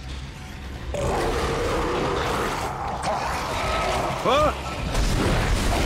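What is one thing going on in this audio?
A creature screeches and snarls.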